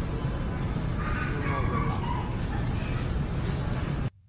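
A metal gate creaks and clanks as it swings open.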